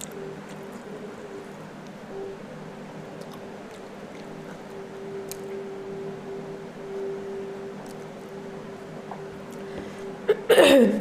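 A young woman eats with her hands, with soft close chewing and smacking sounds.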